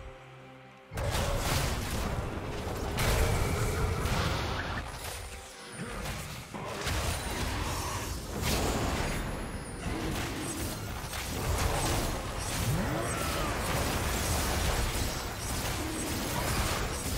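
Magic spells whoosh and crackle during a fast fight.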